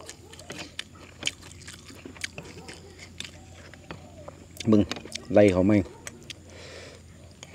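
A metal spoon clinks against an oyster shell.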